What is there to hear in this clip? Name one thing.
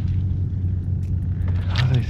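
A fishing reel clicks as it is wound in.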